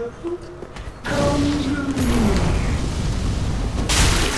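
A fiery blast roars.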